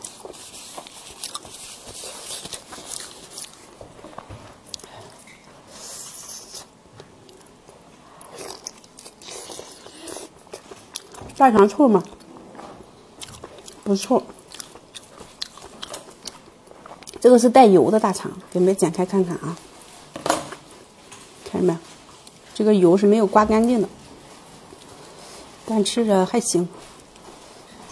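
Food crackles and squelches as hands tear it apart.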